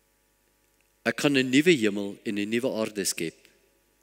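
An elderly man speaks solemnly into a microphone.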